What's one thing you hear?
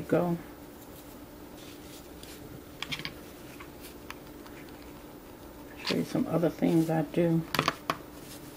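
A rough rope rustles softly against a hand.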